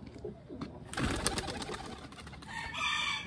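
A pigeon flaps its wings as it takes off.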